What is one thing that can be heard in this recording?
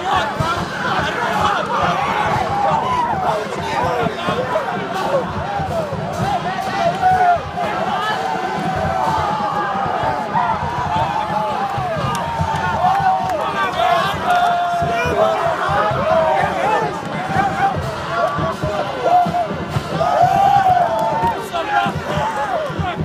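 Many young men shout and cheer with excitement close by, outdoors.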